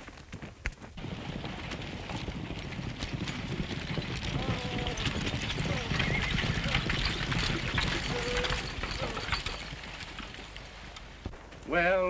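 Horses' hooves gallop.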